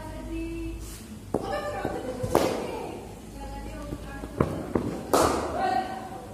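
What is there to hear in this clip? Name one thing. A cricket bat strikes a cricket ball with a sharp crack.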